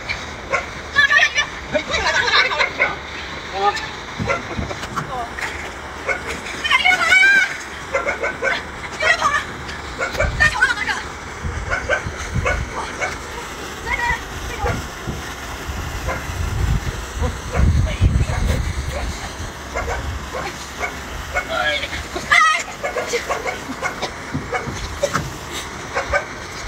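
A man talks loudly outdoors nearby.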